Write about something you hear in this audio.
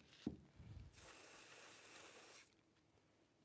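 A spray can hisses briefly.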